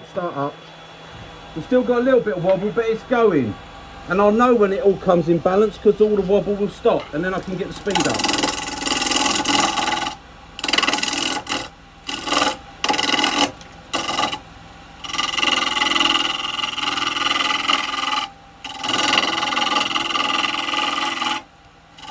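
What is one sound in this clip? A lathe hums as it spins.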